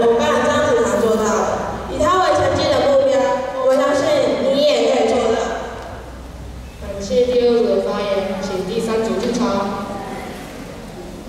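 Children speak loudly and clearly in a large echoing hall.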